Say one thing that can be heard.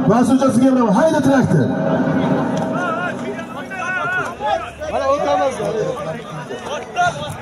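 A large outdoor crowd of men shouts and calls out all around.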